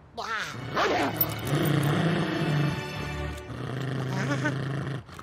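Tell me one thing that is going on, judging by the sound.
A cartoon dog growls low.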